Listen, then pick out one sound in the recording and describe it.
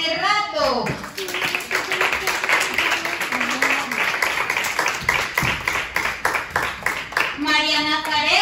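Children clap their hands in quick applause.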